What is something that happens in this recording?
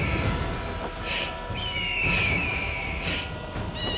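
A large snake hisses loudly.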